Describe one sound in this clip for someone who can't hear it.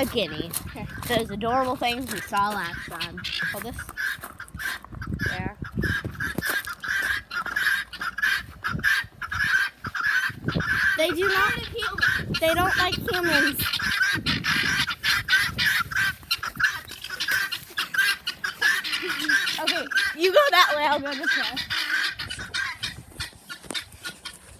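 Guinea fowl call with rapid, repeated, grating cackles.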